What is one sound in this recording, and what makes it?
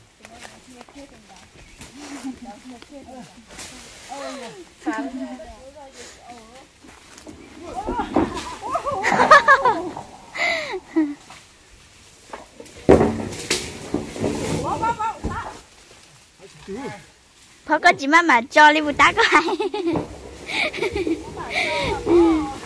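Women talk and call out to each other nearby, outdoors.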